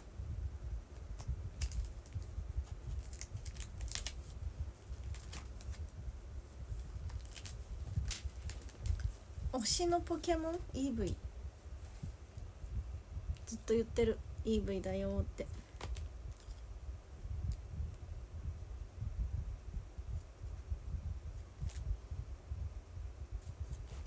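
Small clicks and taps of handling things come close by.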